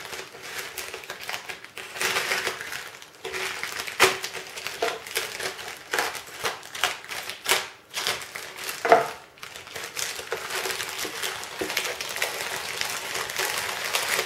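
Plastic packaging crinkles and rustles under hands.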